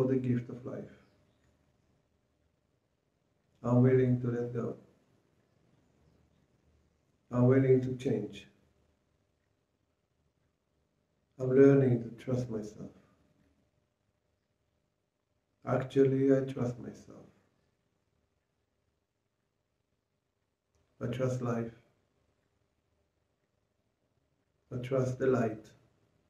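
An older man speaks calmly and slowly in short phrases, close to a microphone, with long pauses between them.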